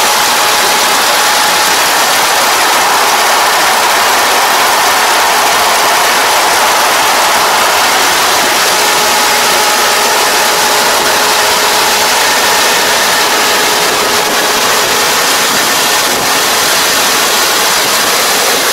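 A combine harvester engine drones and whirs steadily nearby.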